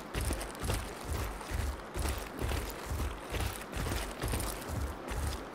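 Heavy footsteps thud rapidly and evenly on the ground as a large animal runs.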